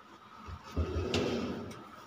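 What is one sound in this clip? An air conditioner hums steadily.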